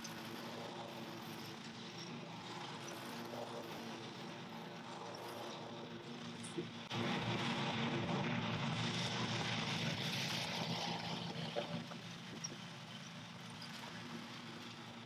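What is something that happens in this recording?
A lawn mower engine hums steadily, growing louder and then fading as the mower moves away.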